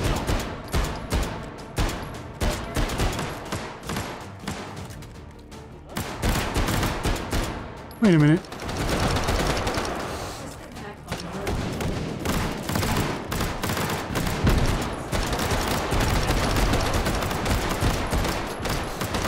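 Gunshots crack in quick, repeated bursts.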